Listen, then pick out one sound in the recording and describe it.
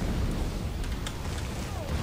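A crackling bolt of lightning strikes.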